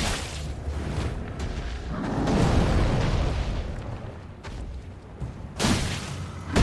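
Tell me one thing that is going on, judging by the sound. Heavy footsteps of a giant creature thud.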